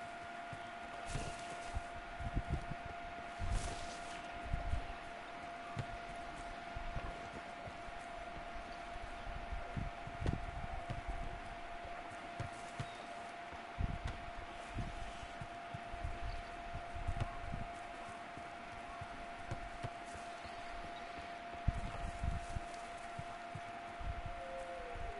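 Footsteps thud on grass as a figure runs.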